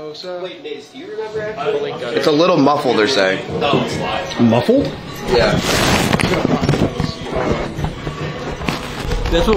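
Young men talk and exclaim with animation close by.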